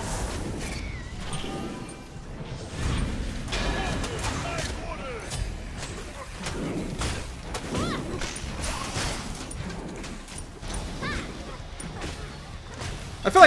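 Game fighters clash with sharp hits.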